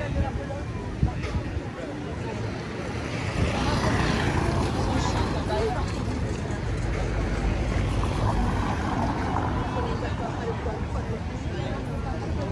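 Traffic rumbles past on the road.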